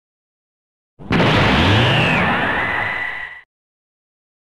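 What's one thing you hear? A whooshing sound sweeps across and fades.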